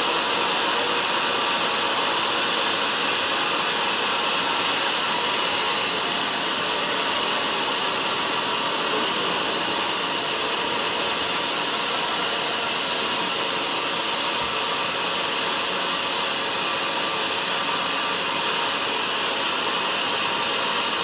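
A band saw whines loudly as it cuts through a log.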